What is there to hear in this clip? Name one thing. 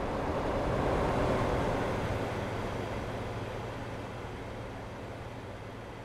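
Tyres roll over asphalt.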